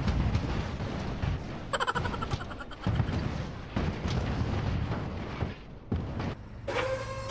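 Fiery wreckage crashes and rumbles.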